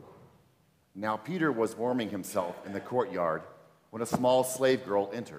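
A man reads aloud into a microphone.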